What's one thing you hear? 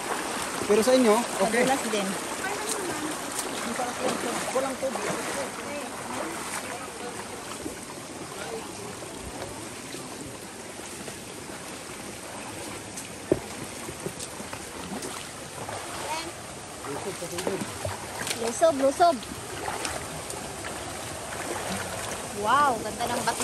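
Water trickles and splashes over rocks.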